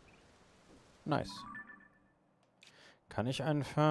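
A short chime sounds as a menu opens.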